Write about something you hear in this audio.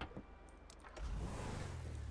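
A car engine starts and rumbles at idle.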